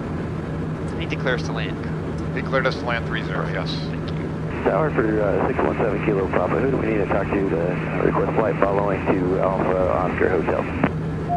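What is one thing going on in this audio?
A man speaks calmly over a radio headset.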